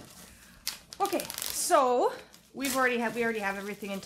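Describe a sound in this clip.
Playing cards rustle and flick as they are shuffled.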